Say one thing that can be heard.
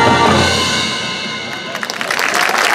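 A marching band holds a loud brass chord that fades away.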